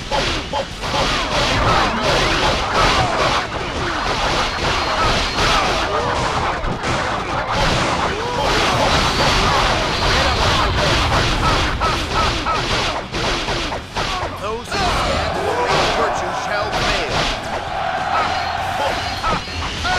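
Many soldiers shout and cry out in battle.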